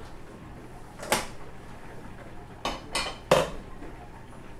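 A metal pan knocks and clatters on a stove top.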